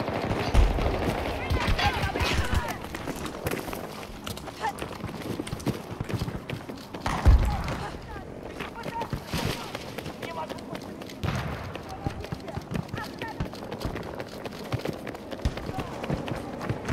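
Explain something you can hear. Footsteps crunch over loose rocks and gravel.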